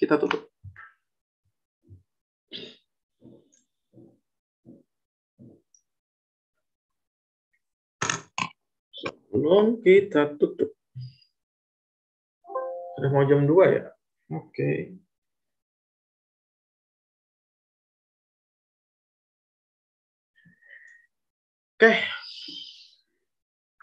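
A young man speaks calmly over an online call, in short bursts with long pauses.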